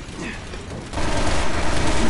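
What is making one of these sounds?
A gunshot cracks loudly.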